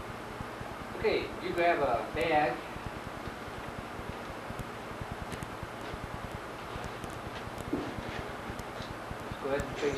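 A man speaks calmly in an echoing room.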